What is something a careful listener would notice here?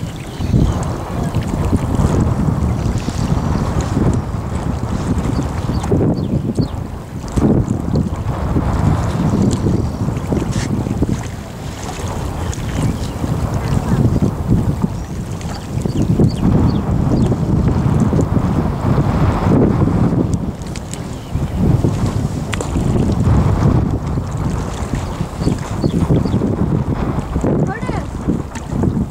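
Gusty wind blows hard outdoors.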